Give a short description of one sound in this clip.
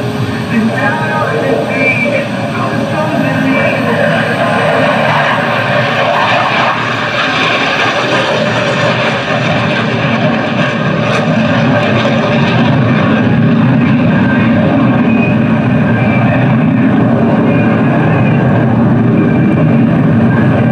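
A jet engine roars loudly as a fighter plane flies low overhead.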